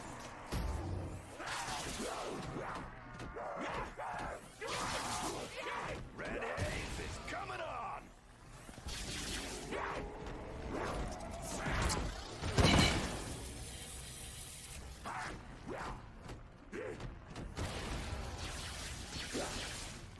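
A blade swishes and slashes repeatedly.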